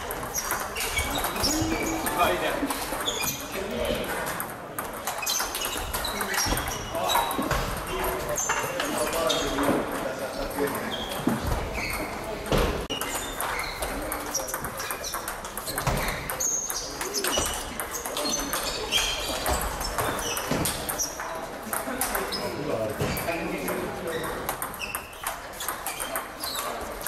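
Shoes squeak on the floor as players move.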